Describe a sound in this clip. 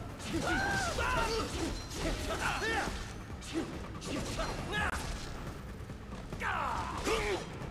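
Explosions burst with loud bangs.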